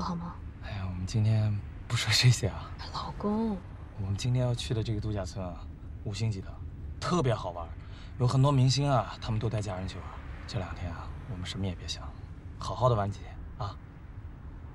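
A young man speaks calmly and cheerfully up close.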